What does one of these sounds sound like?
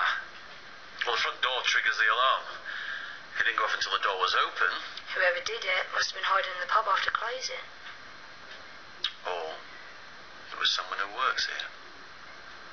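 A man speaks calmly, heard through a television speaker.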